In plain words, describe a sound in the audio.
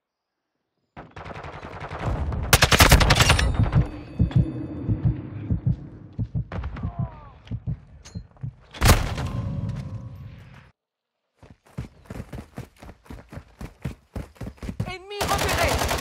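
Rapid rifle gunfire rattles in bursts.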